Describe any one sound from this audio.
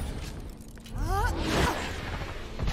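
A swirling magical whoosh surges and rises in pitch.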